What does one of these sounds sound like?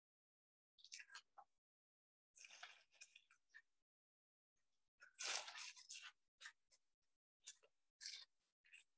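Tissue paper rustles and crinkles in short bursts.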